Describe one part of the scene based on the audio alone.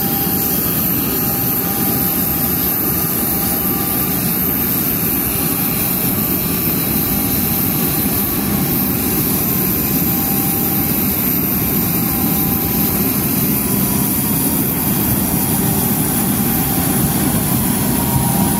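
A jet airliner rolls slowly over concrete on an electric nose-wheel drive.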